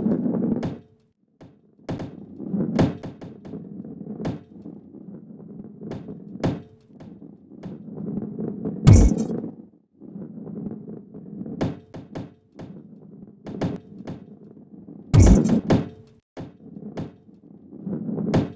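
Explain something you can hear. A ball knocks against wooden walls.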